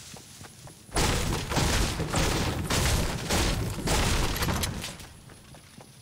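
A pickaxe smashes into a rock with repeated hard knocks.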